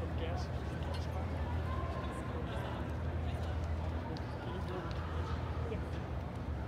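Spectators chatter in a large echoing indoor hall.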